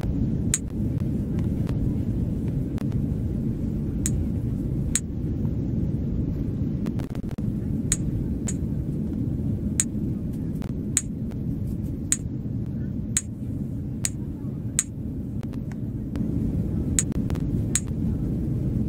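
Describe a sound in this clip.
Short, sharp clicks sound again and again.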